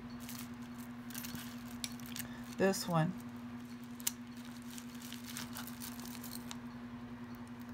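Metal jewellery clinks and rattles as a hand sorts through it.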